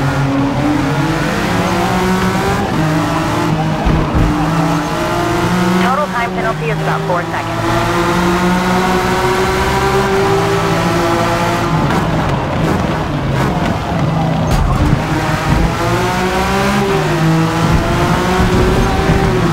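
A racing car engine roars loudly, rising and falling in pitch as it shifts gears.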